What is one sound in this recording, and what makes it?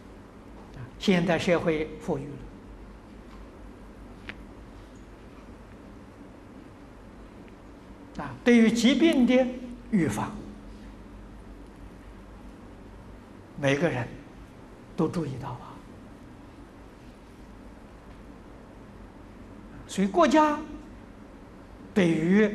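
An elderly man speaks calmly and slowly into a close microphone, in short phrases with long pauses.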